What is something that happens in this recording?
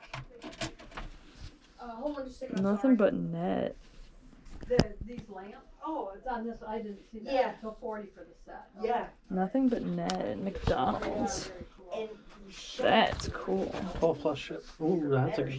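A cap's stiff fabric rustles as it is turned in the hands.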